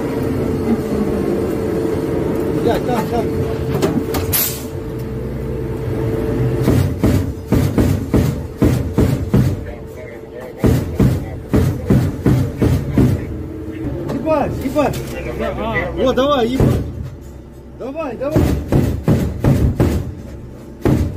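An armoured vehicle's engine rumbles steadily from inside.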